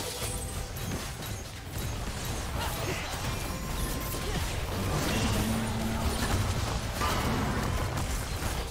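Video game spell effects crackle and boom in a busy fight.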